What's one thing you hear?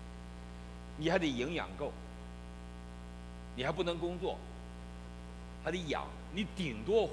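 A middle-aged man speaks with emphasis through a microphone, pausing between phrases.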